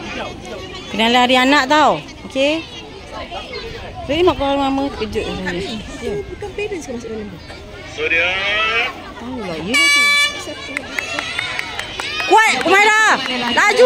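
Children shout and cheer loudly nearby.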